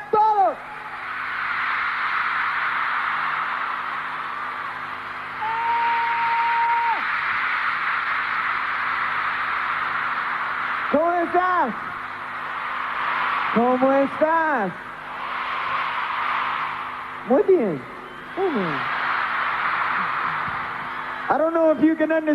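A large stadium crowd screams and cheers.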